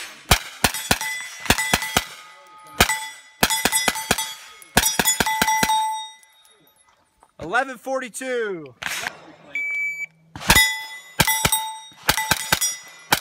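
Rapid gunshots crack loudly outdoors.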